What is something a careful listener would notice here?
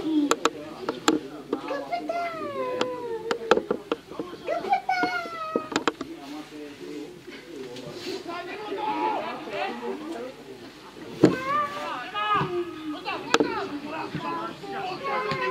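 Men shout to each other across an open pitch outdoors.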